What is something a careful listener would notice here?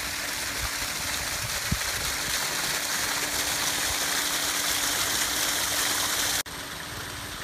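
Water rushes and splashes steadily over a small drop.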